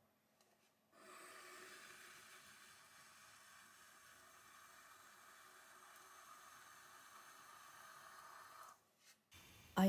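Wet clay squishes and rubs under hands on a spinning potter's wheel.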